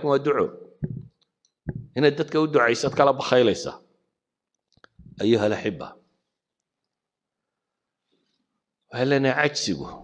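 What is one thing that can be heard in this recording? A middle-aged man speaks calmly and firmly into a microphone, with pauses.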